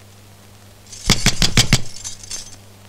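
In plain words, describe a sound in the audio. A hand knocks sharply on a wooden door several times.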